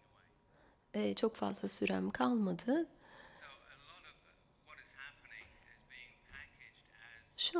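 A man speaks calmly into a microphone, amplified through loudspeakers in a large echoing hall.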